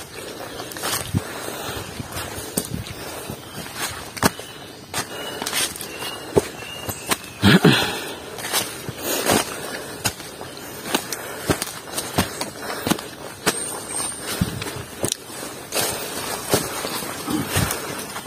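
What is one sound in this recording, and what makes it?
Footsteps crunch on a dirt trail through dry leaves.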